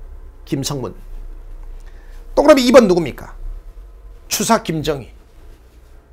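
A middle-aged man speaks with animation into a close microphone, in short bursts.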